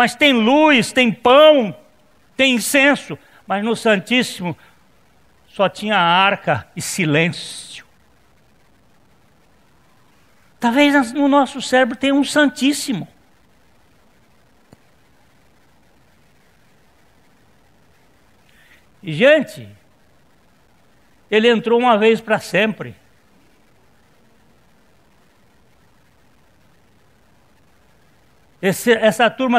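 A middle-aged man speaks with animation into a microphone, in bursts with long pauses.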